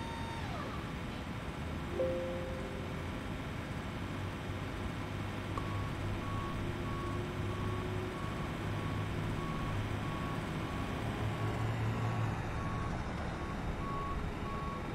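A jet engine hums steadily nearby.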